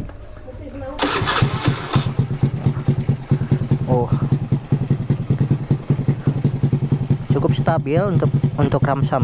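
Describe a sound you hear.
A motorcycle engine idles with a steady putter.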